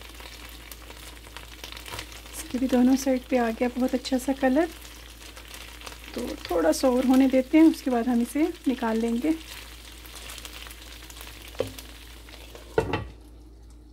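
Meat sizzles and crackles in a hot pan.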